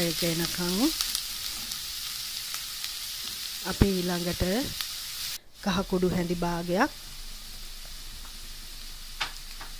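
Onions sizzle and crackle in hot oil.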